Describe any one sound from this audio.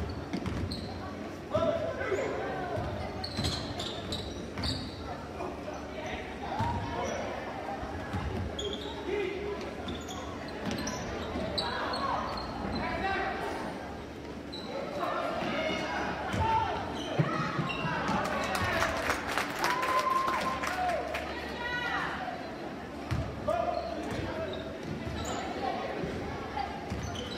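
A crowd of spectators cheers and chatters in a large echoing gym.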